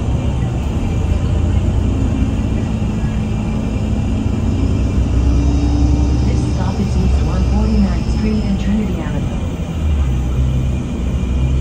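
A bus engine rumbles steadily as the bus drives along.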